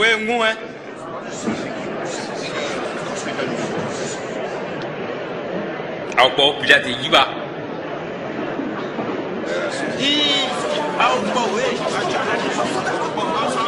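A man speaks sternly.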